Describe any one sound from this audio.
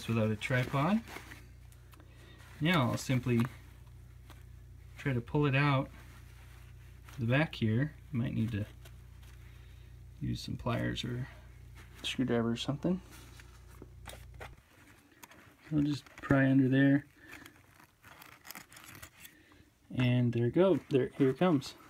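Fabric rustles softly as a hand handles a cap.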